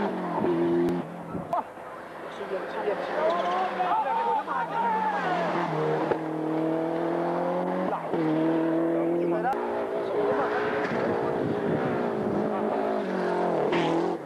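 A rally car engine roars and revs hard as the car speeds past.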